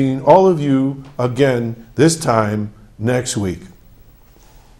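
An older man speaks clearly into a microphone.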